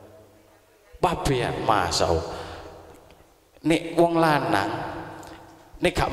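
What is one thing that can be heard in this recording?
A man speaks loudly in short phrases through a microphone and loudspeakers, with a strong echo.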